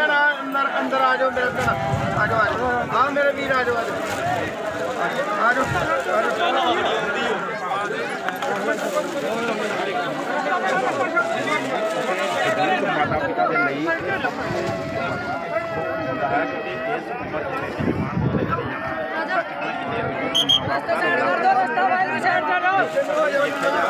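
A large crowd of men and women talks and calls out all around, close by, outdoors.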